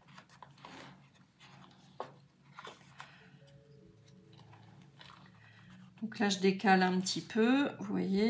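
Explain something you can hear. Paper rustles softly as pages are handled and folded.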